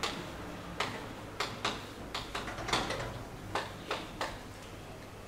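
Chalk taps and clicks against a blackboard.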